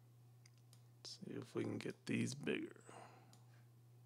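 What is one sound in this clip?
A man speaks briefly and calmly, close to a microphone.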